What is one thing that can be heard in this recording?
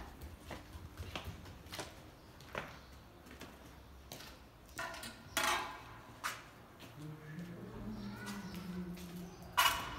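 Footsteps walk across a tiled floor.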